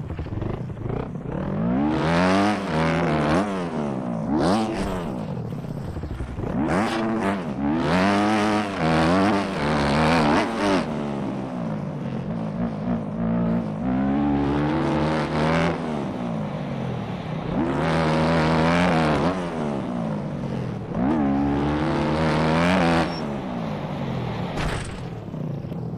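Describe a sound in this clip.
A dirt bike engine revs up and down loudly, rising and falling in pitch.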